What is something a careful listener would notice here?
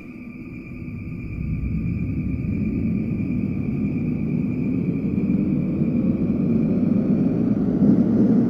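An electric train motor whines and rises steadily in pitch as the train speeds up.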